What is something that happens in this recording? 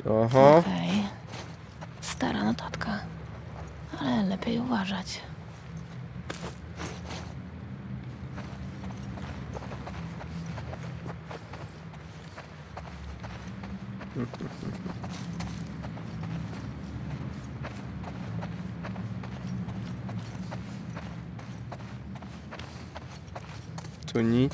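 A young man speaks close to a microphone.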